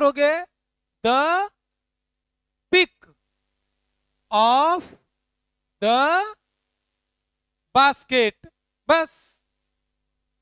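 A young man speaks in short, clear phrases, with long pauses between them.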